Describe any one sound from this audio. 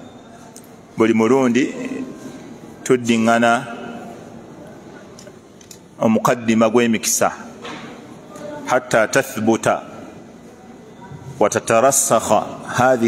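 A middle-aged man speaks calmly into a close microphone, in short bursts with pauses.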